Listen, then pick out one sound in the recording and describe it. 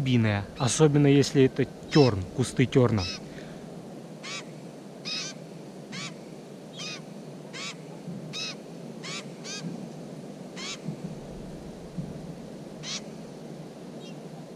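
Baby birds chirp in short, high, repeated cheeps close by.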